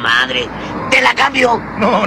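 A young woman's voice speaks pointedly.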